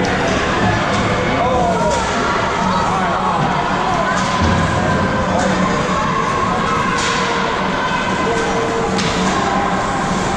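Children shout and call out across a large echoing rink.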